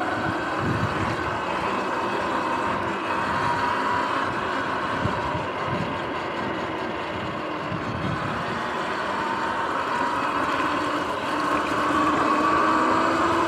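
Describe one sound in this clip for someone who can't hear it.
Wind rushes and buffets loudly past the rider.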